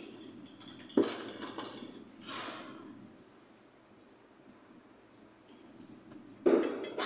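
A hand rubs and knocks against a metal motor.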